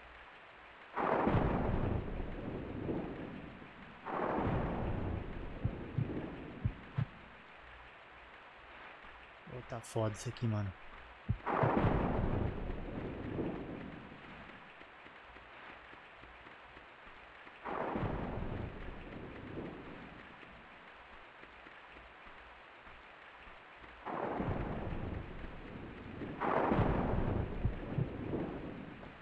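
A young man talks into a microphone close by, calmly and in short bursts.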